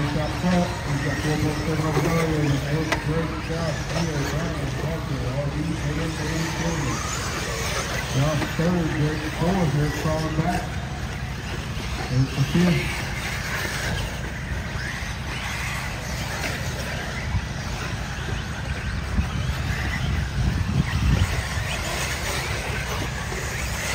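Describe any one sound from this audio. Small electric model cars whine as they race over dirt.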